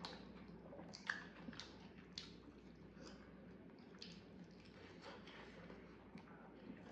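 Close-up chewing and crunching sounds of food being eaten.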